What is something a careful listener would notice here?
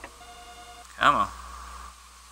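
A heavy switch clunks into place.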